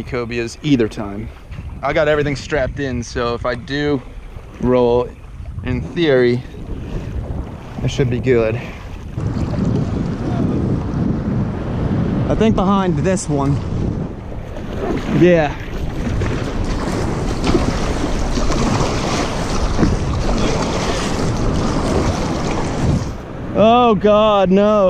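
Water splashes against a kayak hull.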